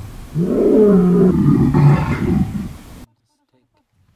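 A lion roars loudly and deeply, then falls silent.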